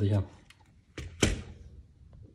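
A small plastic device knocks lightly against a rubber mat.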